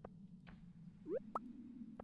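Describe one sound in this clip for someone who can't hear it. A short rising blip sounds as an item is picked up in a video game.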